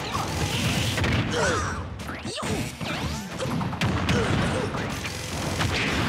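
Explosive blasts and whooshes burst out in quick succession.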